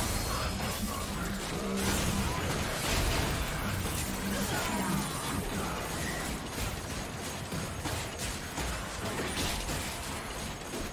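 Game hits and blasts land in quick succession.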